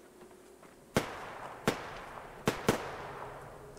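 Rifle shots crack close by.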